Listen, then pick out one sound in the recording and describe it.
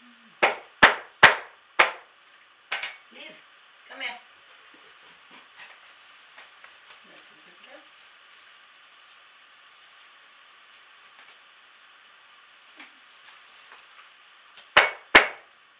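A dog barks sharply close by, several times.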